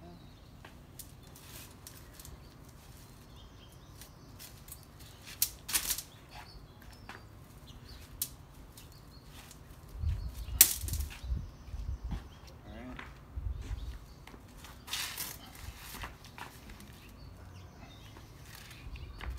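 A collapsible net trap rattles and clatters as it is folded and unfolded on pavement.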